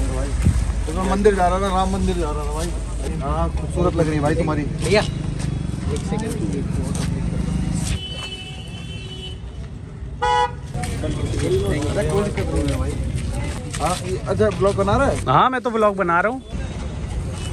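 Young men talk with animation close by, outdoors.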